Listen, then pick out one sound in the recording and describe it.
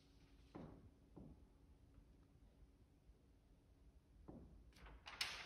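Objects knock softly on a table.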